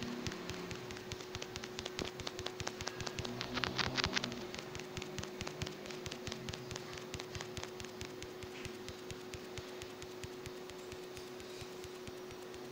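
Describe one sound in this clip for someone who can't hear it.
Rapid blade strikes clash and thud in a fast fight.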